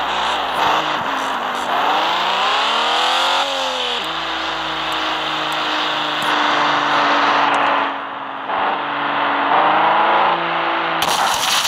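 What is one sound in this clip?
A car engine revs, its pitch rising and dropping as gears change.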